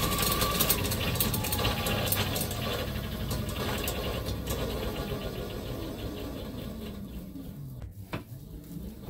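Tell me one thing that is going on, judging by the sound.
A hoverboard hub motor whines, falling in pitch as it spins down.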